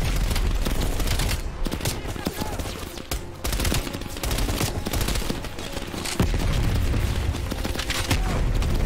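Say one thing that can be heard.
Gunfire and explosions rumble and crack throughout.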